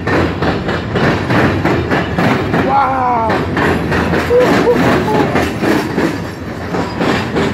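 A freight train rumbles and clatters past on the tracks close by.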